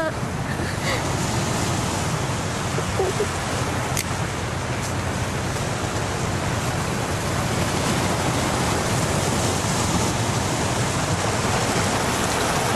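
Waves crash and roar against rocks.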